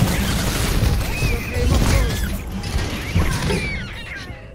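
Rapid gunfire and explosions crackle loudly.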